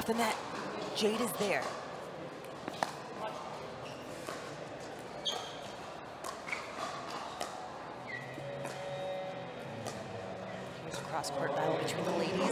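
Pickleball paddles pop sharply against a plastic ball in a quick rally.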